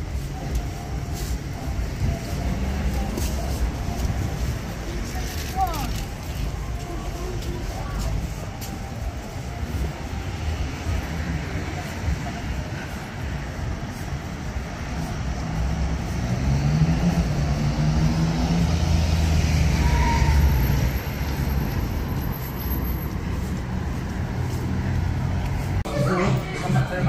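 Traffic hums steadily along a busy street outdoors.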